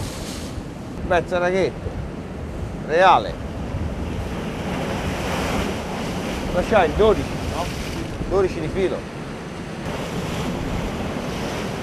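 Waves surge and splash against rocks outdoors.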